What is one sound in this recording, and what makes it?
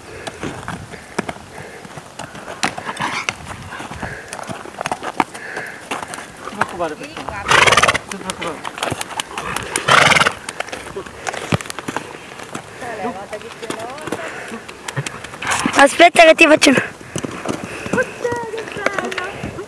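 Horse hooves thud on grassy ground.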